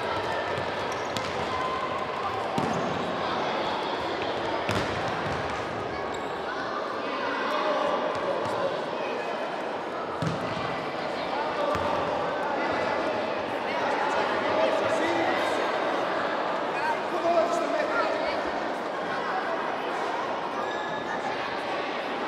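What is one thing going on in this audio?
Young players shout and call out in a large echoing hall.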